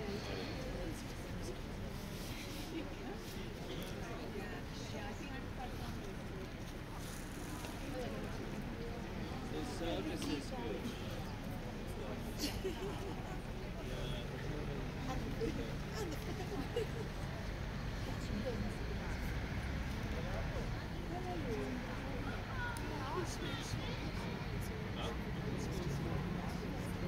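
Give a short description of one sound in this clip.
A group of men and women murmur prayers quietly together outdoors.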